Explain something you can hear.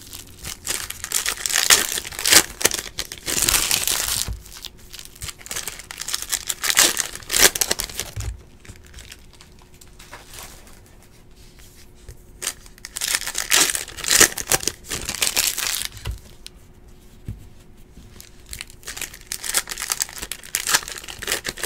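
Foil card wrappers crinkle and rustle as they are torn open.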